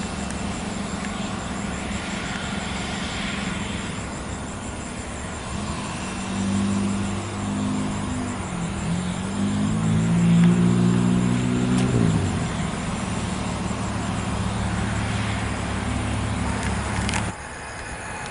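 A jet airliner's engines whine and rumble as it taxis nearby.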